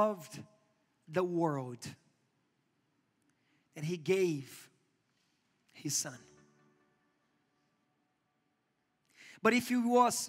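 A man speaks with emphasis through a microphone in a large echoing hall, pausing between phrases.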